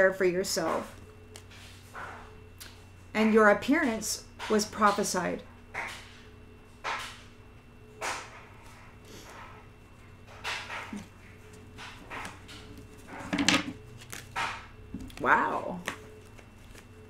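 A middle-aged woman talks calmly, close to the microphone.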